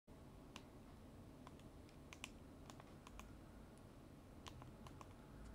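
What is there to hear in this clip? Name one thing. Buttons on a remote control click repeatedly, close by.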